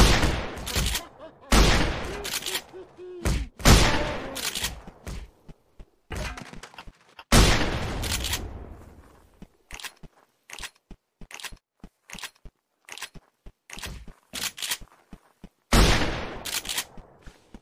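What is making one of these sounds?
A shotgun fires loud booming blasts, one after another.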